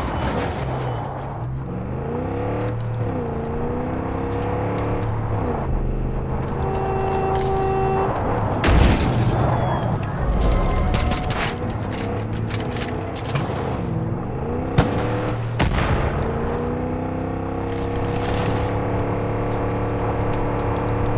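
A truck engine hums and revs up and down.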